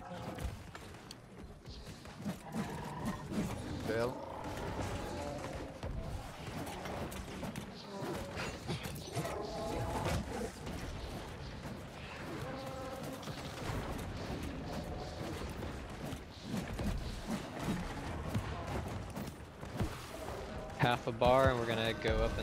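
A huge beast growls and roars.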